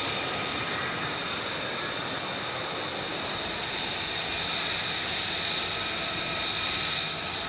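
A jet engine idles with a steady, high whine.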